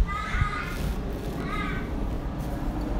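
A young child calls out in a high voice nearby.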